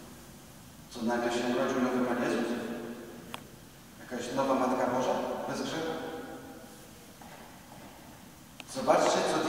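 A middle-aged man speaks slowly and earnestly through a microphone in a large echoing hall.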